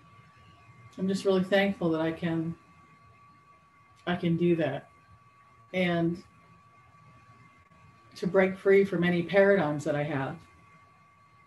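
A middle-aged woman speaks calmly in short phrases into a webcam microphone, with pauses between them.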